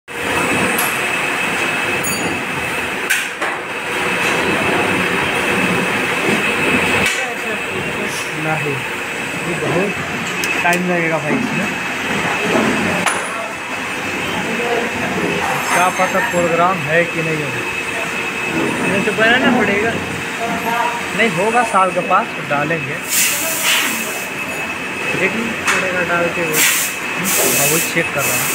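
Machinery hums steadily nearby.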